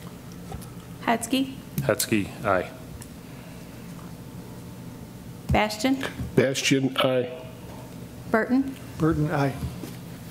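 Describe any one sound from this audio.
A middle-aged man speaks calmly into a microphone in short bursts with pauses.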